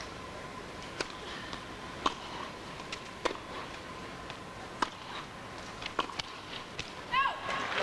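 A tennis ball is struck back and forth with sharp pops of the racket.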